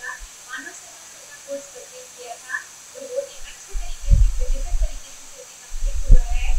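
A young woman speaks quietly over an online call.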